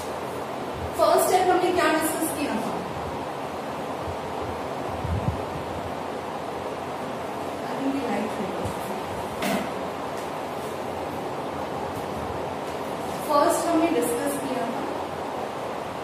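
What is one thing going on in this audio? A woman speaks calmly nearby, with short pauses.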